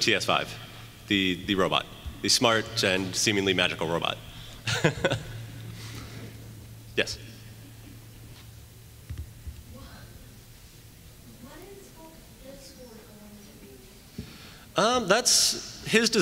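A crowd murmurs quietly.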